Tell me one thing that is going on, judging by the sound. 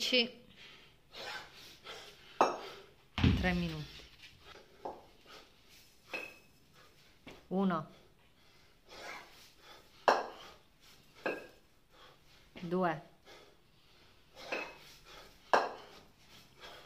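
Heavy kettlebells thud and clank.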